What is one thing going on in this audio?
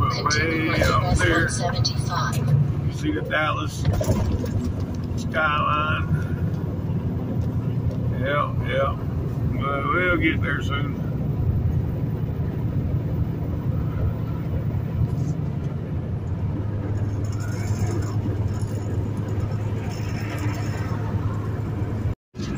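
Tyres roar on a concrete road.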